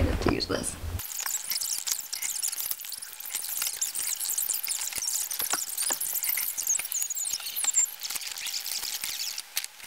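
Clothes rustle and hangers clink in a closet.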